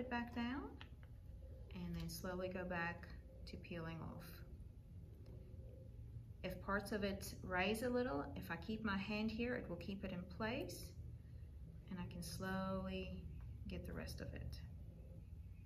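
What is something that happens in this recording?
A woman talks calmly and explains, close to a microphone.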